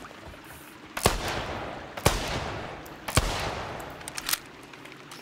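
A rifle fires three loud shots that echo away.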